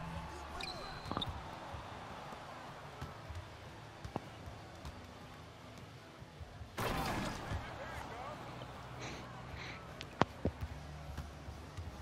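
A basketball bounces on the court with dull thuds.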